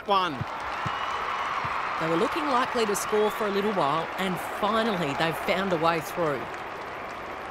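A crowd cheers and roars in a stadium.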